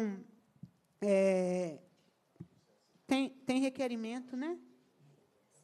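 A man speaks loudly and briefly into a microphone in a large hall.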